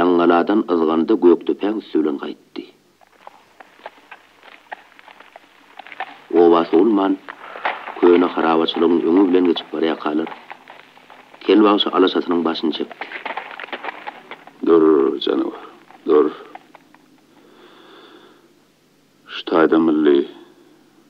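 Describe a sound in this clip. A long-necked lute is plucked and strummed.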